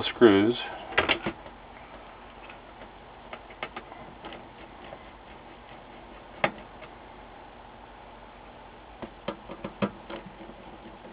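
A screwdriver clicks and scrapes against metal screws.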